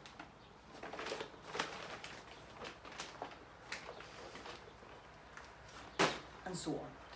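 A young woman's feet thud softly on the floor.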